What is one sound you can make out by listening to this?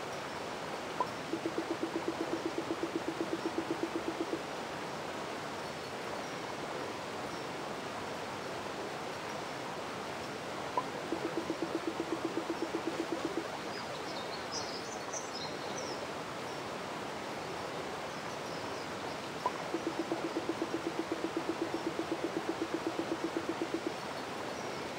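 Rapid, buzzing blips chatter in short bursts, like game dialogue text being typed out.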